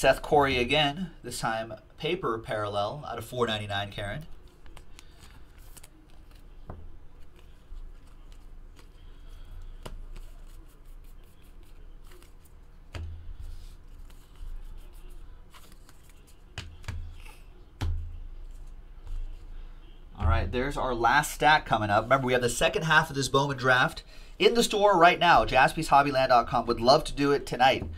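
Trading cards rustle and click as hands shuffle them.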